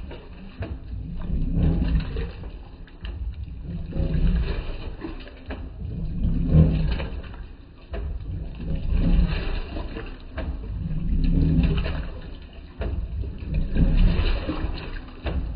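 A washing machine agitator churns laundry in water with a rhythmic swishing.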